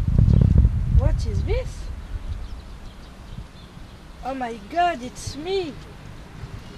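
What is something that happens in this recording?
A woman speaks briefly nearby in a high voice.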